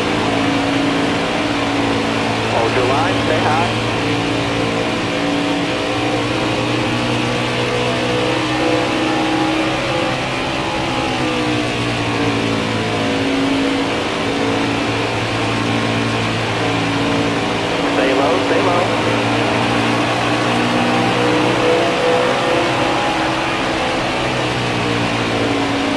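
A racing engine roars steadily at high speed.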